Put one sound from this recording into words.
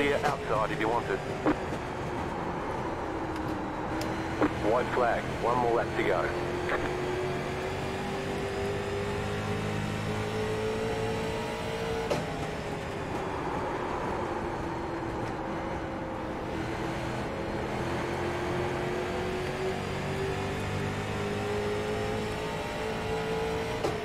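A racing car engine drones steadily, its pitch slowly rising and falling.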